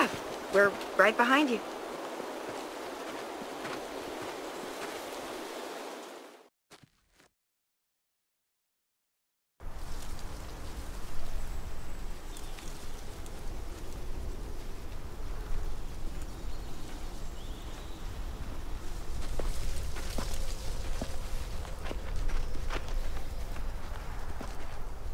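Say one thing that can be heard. Wind rustles through trees and grass outdoors.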